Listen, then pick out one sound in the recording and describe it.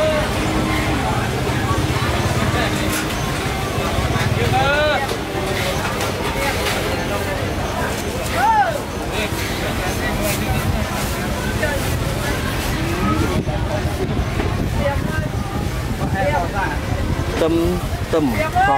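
Many people talk at once nearby outdoors, in a busy murmur.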